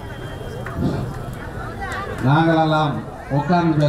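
A middle-aged man speaks loudly and with animation into a microphone over a loudspeaker, echoing outdoors.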